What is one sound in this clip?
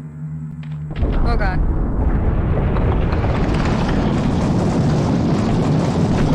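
A huge boulder rumbles loudly as it rolls.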